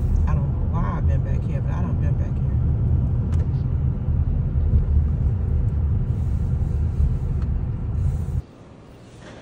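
Heavy rain and wind roar against a car, heard from inside.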